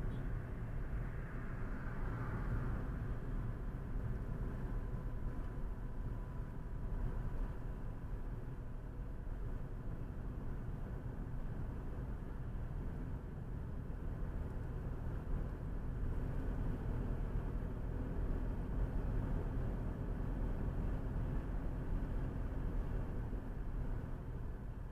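Tyres rumble on an asphalt road.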